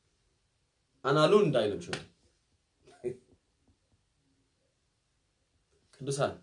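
A young man speaks with animation close to a microphone, with short pauses.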